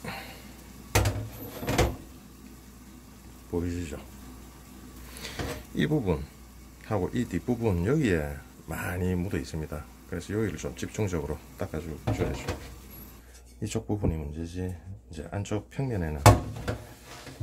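A metal pan clanks against a hard surface.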